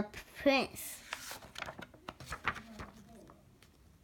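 A paper page turns.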